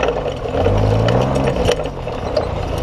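A buggy engine revs up and down briefly.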